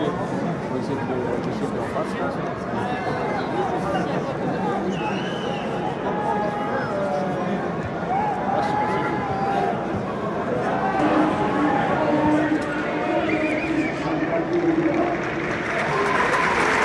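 A large stadium crowd chants and sings together, echoing in the open air.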